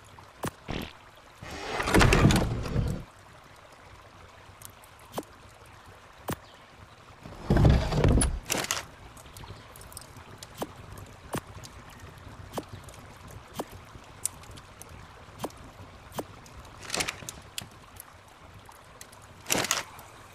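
Short soft clicks sound now and then.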